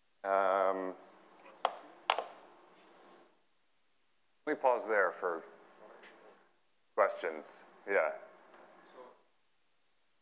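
A man speaks calmly to an audience, heard through a microphone in a large echoing hall.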